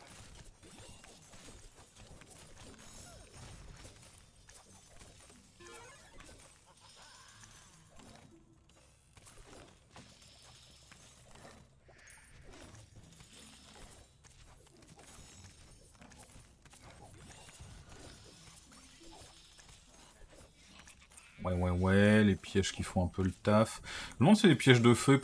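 Video game sound effects clatter and chime softly.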